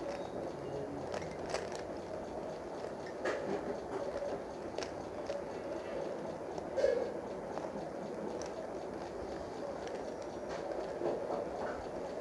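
A puzzle cube clicks and clacks as it is twisted.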